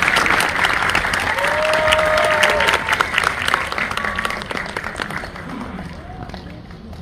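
An audience applauds loudly in a large hall, then the clapping fades.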